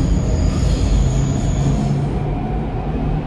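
A train's motor whines with a high, steady tone that fades away.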